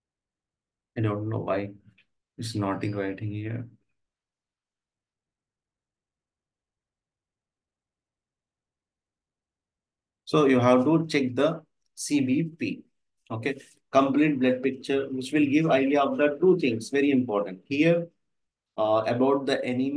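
A man speaks calmly and clearly through a microphone.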